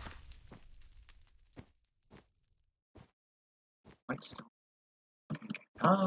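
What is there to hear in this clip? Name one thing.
Soft block-placing thuds sound in a video game, one after another.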